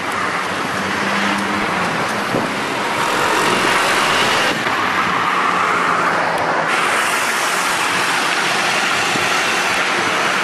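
Wind roars loudly past.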